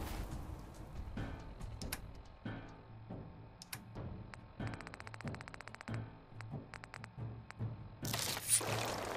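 Menu selections click in quick succession.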